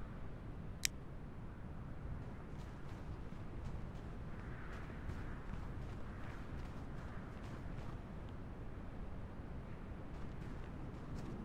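Footsteps crunch on a rocky path.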